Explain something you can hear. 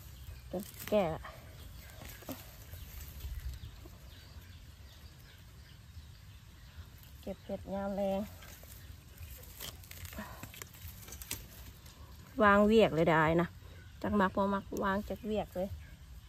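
A small trowel scrapes and digs into dry soil and leaves.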